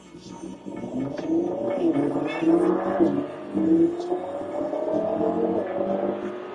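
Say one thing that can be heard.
A car engine hums and revs up as the car accelerates, heard from inside.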